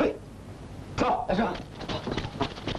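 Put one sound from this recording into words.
A man shouts a command.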